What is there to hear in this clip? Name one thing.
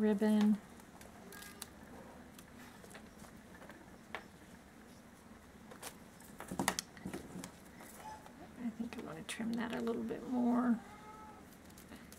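Scissors snip through ribbon.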